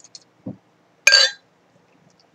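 A bottle cap pops off with a short hiss.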